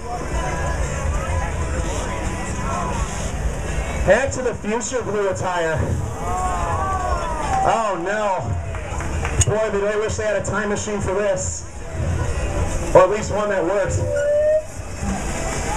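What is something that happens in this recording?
A crowd of people chatters and calls out in the background outdoors.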